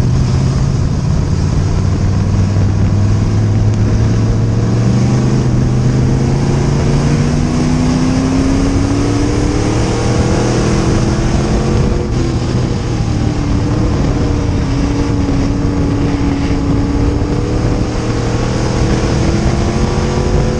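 A race car engine roars loudly up close, revving up and down.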